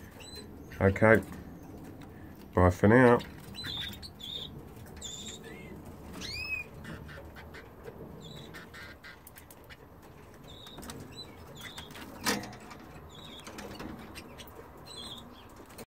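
Small birds chirp and twitter close by throughout.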